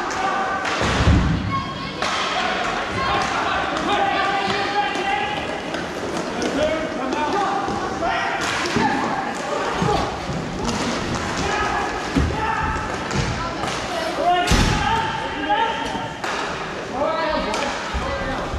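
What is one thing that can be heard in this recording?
Hockey sticks clack against a ball on a hard rink.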